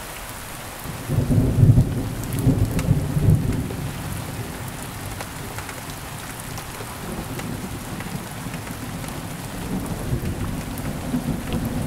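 Thunder rumbles deeply and rolls on.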